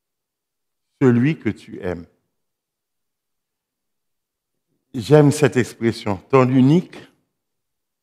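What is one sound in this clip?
A man speaks calmly through a microphone in short phrases, with pauses.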